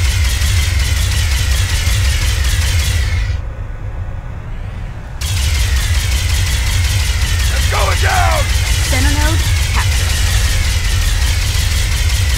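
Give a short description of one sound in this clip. A vehicle's gun fires in bursts.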